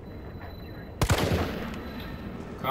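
A pistol fires a single loud shot that echoes.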